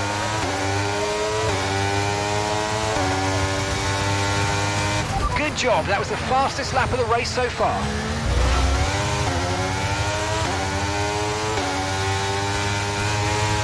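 A racing car engine screams at high revs, climbing through the gears with quick shifts.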